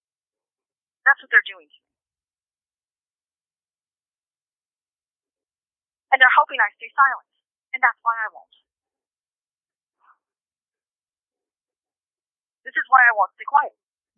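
A young woman speaks calmly, in short bursts.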